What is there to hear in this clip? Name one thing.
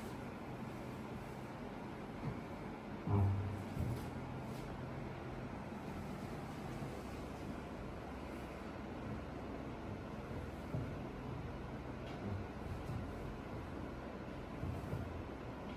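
Hands rub and knead skin with soft, muffled thumps.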